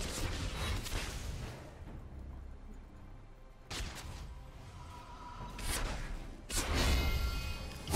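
Video game spell effects whoosh and crackle in quick bursts.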